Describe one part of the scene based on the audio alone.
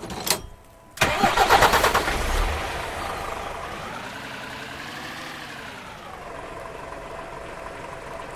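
A truck engine rumbles and revs up and down.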